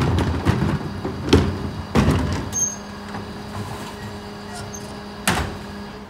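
A bin lifter on a garbage truck whirs and clunks as it tips a bin.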